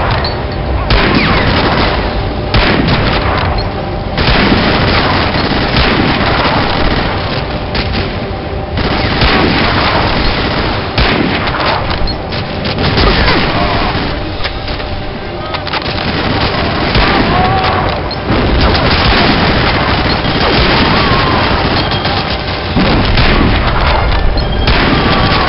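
Rifle shots ring out loudly, one at a time, with echoing cracks.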